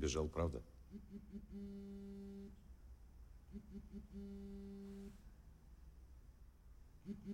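A mobile phone rings with a repeating tune.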